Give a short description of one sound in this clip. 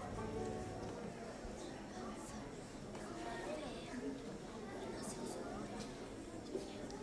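A young girl speaks through a microphone and loudspeaker.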